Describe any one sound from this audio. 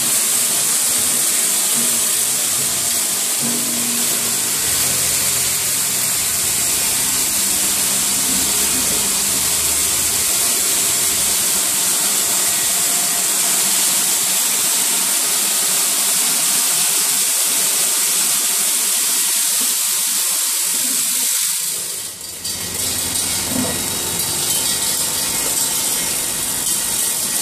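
Factory machines hum and rattle steadily.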